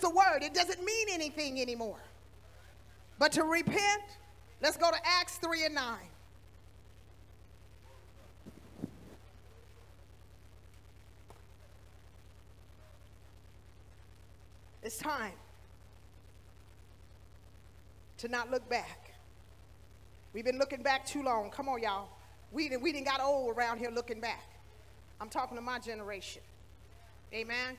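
A woman speaks with feeling into a microphone, in bursts with long pauses.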